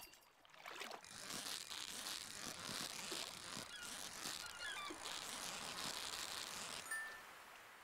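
A fishing reel whirs steadily as a fish is reeled in.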